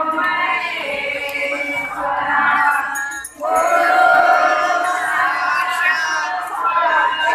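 A crowd of women sings together loudly and close by.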